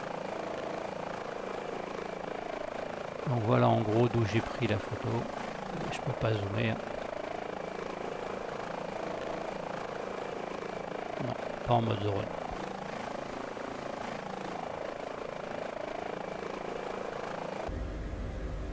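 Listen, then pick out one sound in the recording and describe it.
A helicopter engine drones steadily as its rotor turns.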